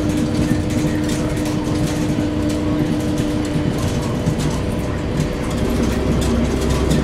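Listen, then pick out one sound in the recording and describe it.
A bus body rattles and creaks as it moves.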